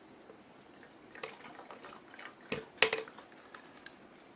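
Water drips and splashes back into a pot.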